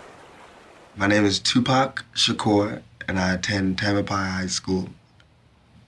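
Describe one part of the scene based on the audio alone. A young man speaks casually and close to a microphone.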